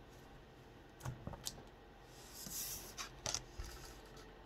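Cards slide and tap against a table.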